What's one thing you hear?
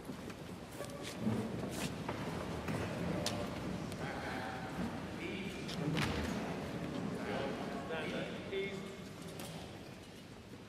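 An elderly man speaks formally into a microphone in a large echoing hall.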